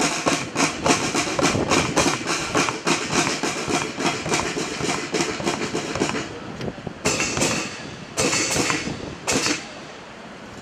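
A marching band's drums beat a brisk rhythm outdoors.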